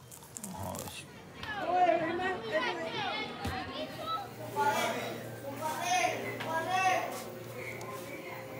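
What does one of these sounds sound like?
Children shout and laugh while playing outdoors.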